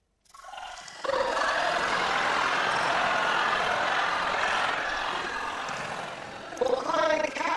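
A studio audience laughs and applauds.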